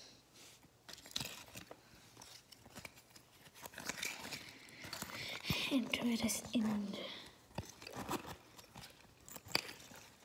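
Plastic capsule halves click and rattle as they are handled.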